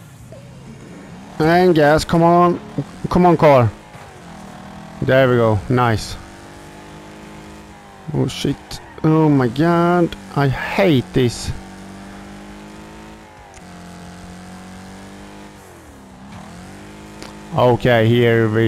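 A car engine roars steadily.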